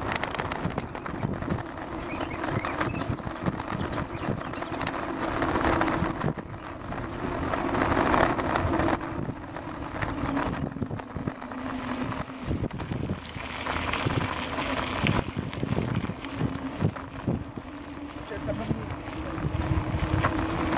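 Bicycle tyres rumble and crunch over a gravel path.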